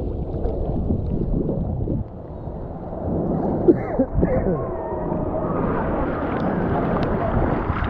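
Water splashes up as a man throws it.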